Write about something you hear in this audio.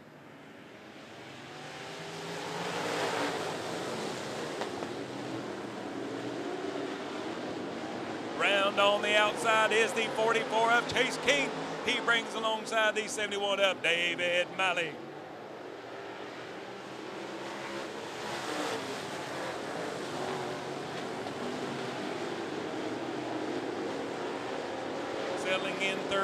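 Race car engines roar loudly, swelling as cars pass close by.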